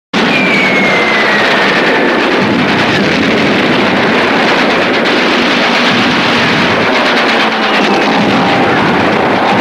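An aircraft engine roars steadily.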